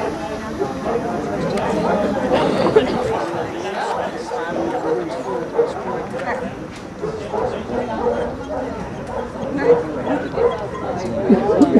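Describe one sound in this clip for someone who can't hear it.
People talk quietly at a distance outdoors.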